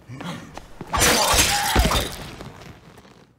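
A knife stabs wetly into flesh.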